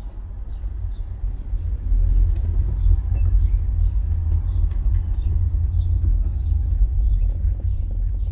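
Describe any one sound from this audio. A car engine rumbles low and steady from inside the car as it drives slowly.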